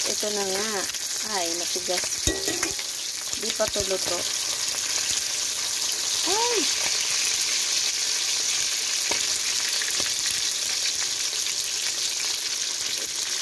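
A metal ladle scrapes and taps against a steel wok.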